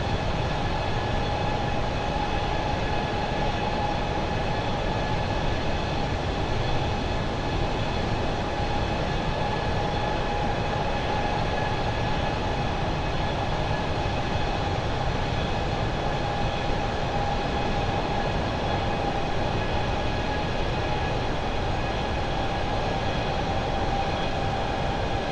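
Jet engines roar steadily with a constant whine.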